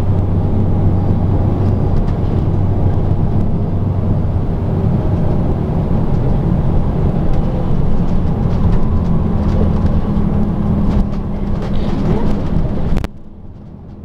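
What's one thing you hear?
Passing cars rush by on the road.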